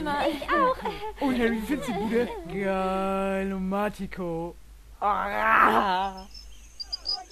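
A young man answers, drawing out his words in amazement.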